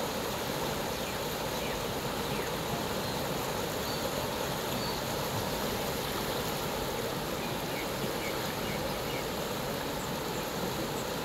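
Fast floodwater rushes and churns loudly.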